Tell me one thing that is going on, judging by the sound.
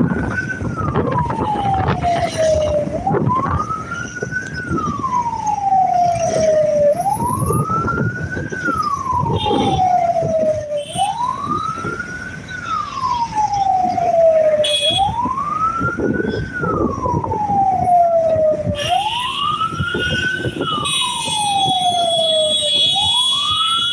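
Motorcycle engines hum along a busy road.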